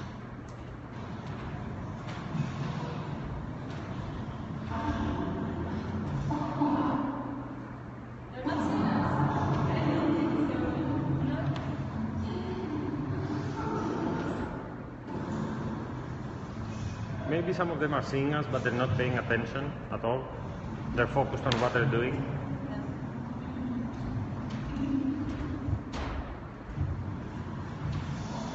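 Dancers' feet thump and slide on a wooden floor in an echoing hall.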